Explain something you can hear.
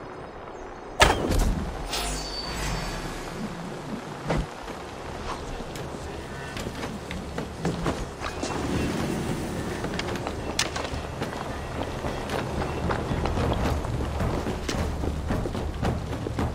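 Hands and feet scrape and thud as a figure climbs over wood and stone.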